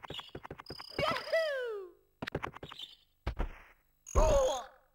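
A game sound effect chimes with a falling tone.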